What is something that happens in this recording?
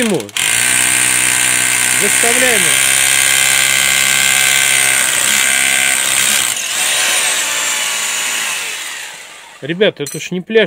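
A power drill whirs loudly, drilling into a wall.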